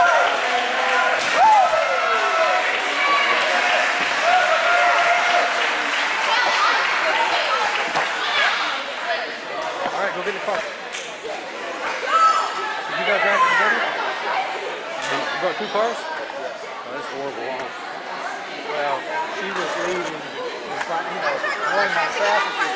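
A crowd of girls and young women chatter and call out in a large echoing gym.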